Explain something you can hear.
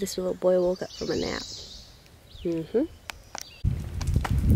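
A young woman speaks close by, calmly.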